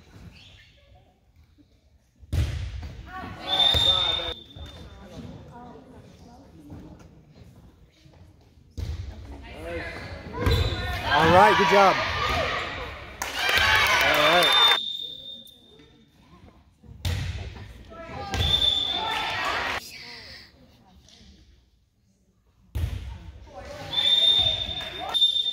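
A volleyball is struck with a hard slap.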